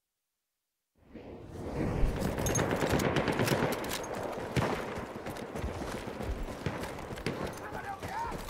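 Gunfire and explosions rumble in the distance.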